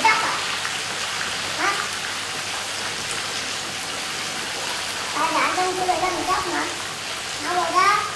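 A young boy talks nearby with animation.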